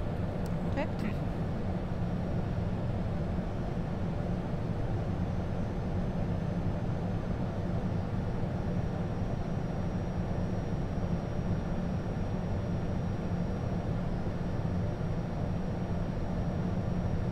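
A jet engine roars steadily with a deep cockpit rumble.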